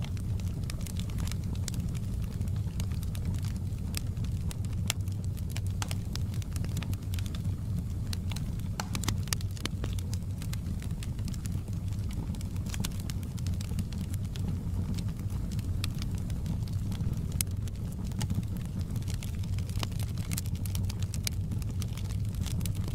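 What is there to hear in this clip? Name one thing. Logs crackle and pop in a fire.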